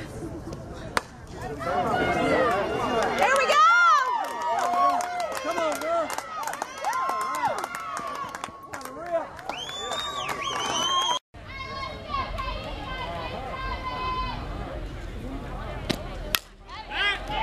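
A metal bat cracks sharply against a softball.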